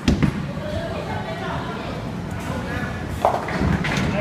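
A bowling ball rumbles down a wooden lane.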